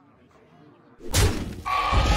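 A game's magic attack lands with a loud crashing burst.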